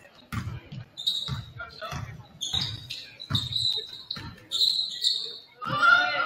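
Sneakers squeak on the court floor.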